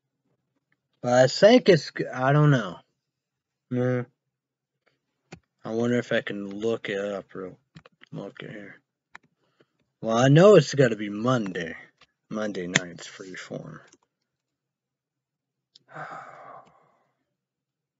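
A young man talks casually, close by.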